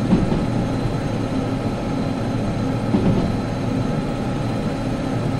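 A train engine rumbles steadily as the train rolls along the rails.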